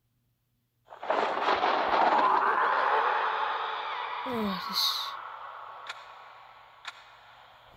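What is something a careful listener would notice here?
A monster growls loudly.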